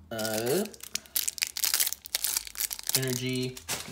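Plastic-wrapped cards crinkle and rustle in a person's hands.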